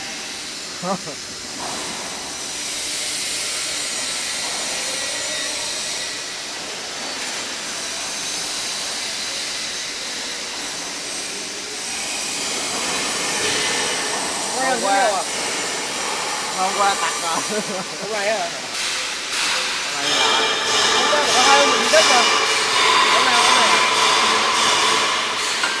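A welding arc crackles and hisses steadily.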